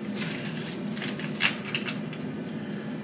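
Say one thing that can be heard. A plastic packet crinkles and rustles in hands.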